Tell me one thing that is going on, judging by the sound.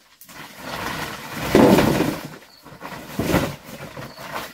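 Food tumbles out of a bag into a plastic basin.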